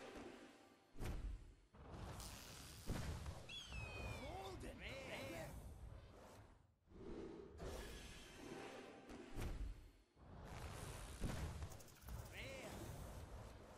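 Magical whooshes and chimes ring out in bursts.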